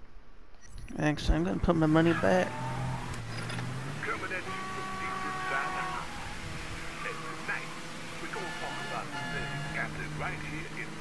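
A car engine runs and revs as the car drives along.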